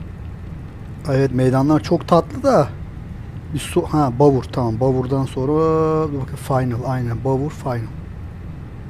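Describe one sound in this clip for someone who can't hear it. A man speaks calmly into a close headset microphone.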